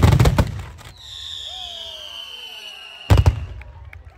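Fireworks whistle as they shoot upward.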